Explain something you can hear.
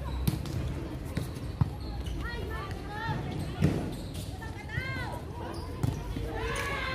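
A volleyball is struck by hand.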